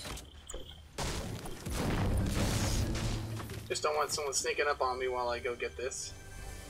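A pickaxe strikes wood with loud thuds.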